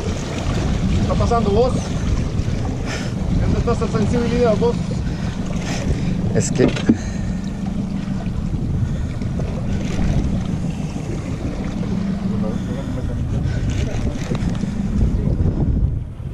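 A fishing reel whirs and clicks as it is cranked.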